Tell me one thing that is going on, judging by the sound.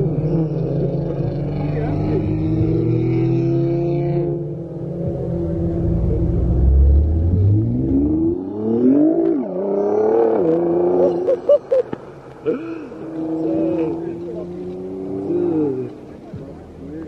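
A car engine roars and revs hard nearby.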